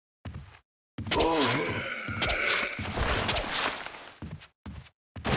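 A creature attacks with loud tearing and struggling sounds.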